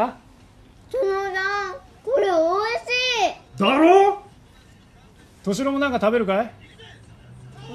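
A young girl speaks in a high voice nearby.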